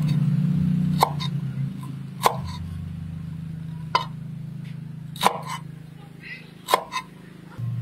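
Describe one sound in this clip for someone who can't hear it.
A knife chops through limes on a wooden board with sharp knocks.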